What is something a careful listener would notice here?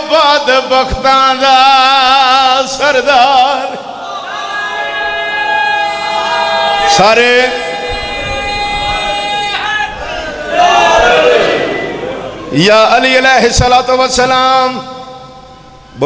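A crowd of men chants loudly together.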